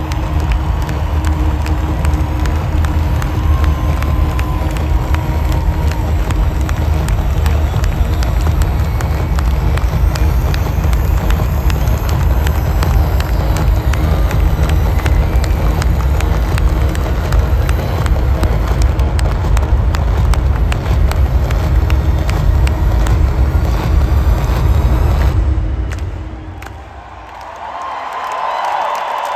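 A large crowd cheers and sings along.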